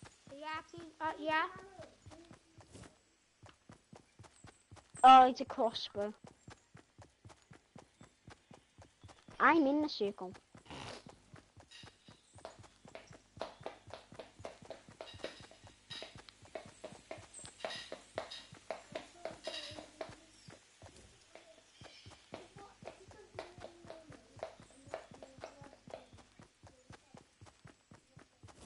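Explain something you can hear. Footsteps patter quickly and steadily on grass.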